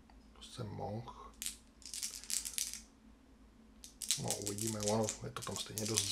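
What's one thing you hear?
Dice rattle in a cupped hand.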